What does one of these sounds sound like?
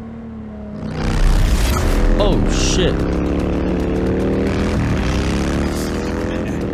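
A motorcycle engine roars loudly close by, rising in pitch.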